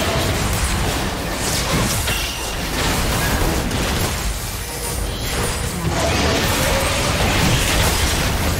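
Game spells crackle and burst in a fight.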